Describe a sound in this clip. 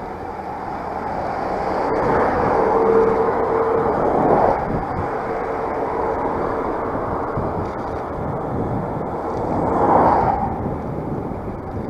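Cars and trucks pass by on a nearby road.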